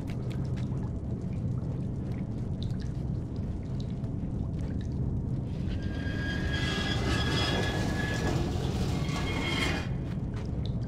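A wooden crate scrapes as it is dragged across a hard floor.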